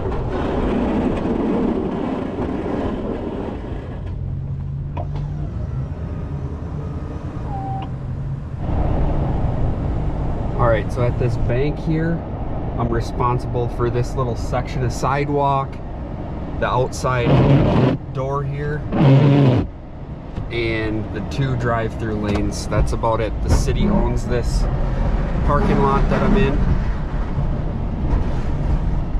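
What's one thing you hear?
A truck engine hums steadily.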